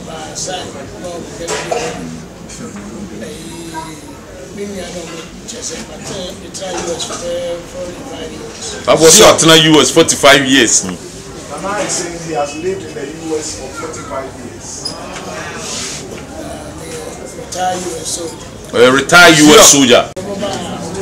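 An elderly man speaks calmly and steadily, close by.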